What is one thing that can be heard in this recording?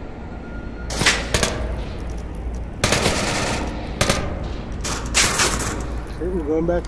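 Gunfire rings out in rapid bursts.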